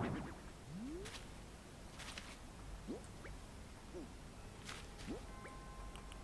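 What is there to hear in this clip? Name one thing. Short rising electronic blips sound.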